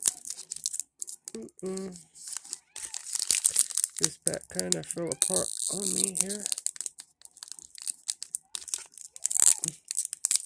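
A foil wrapper crinkles and tears as fingers open it.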